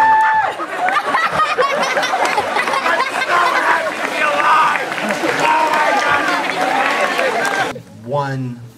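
A group of young people laughs and cheers loudly.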